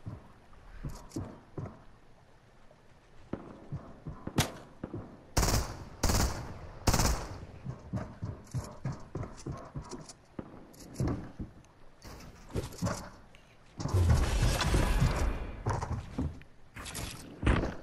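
Wooden building pieces knock and clatter as they snap into place.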